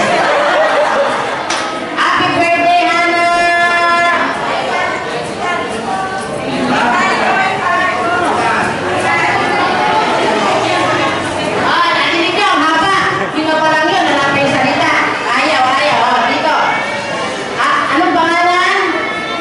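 A young woman speaks with animation through a microphone and loudspeakers in an echoing hall.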